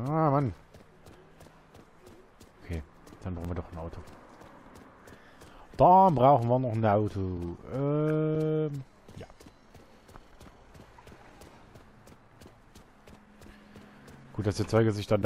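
Footsteps run quickly on paving stones.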